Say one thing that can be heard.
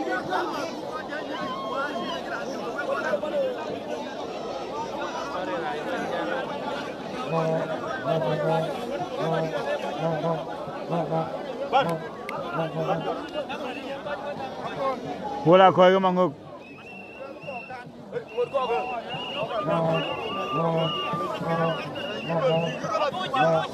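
A large crowd chants and sings outdoors.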